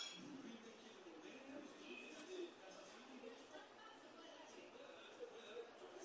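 Milk pours softly into a cup.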